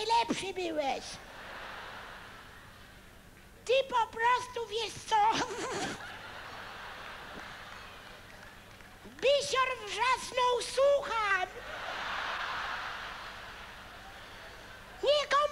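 A large audience laughs in a hall.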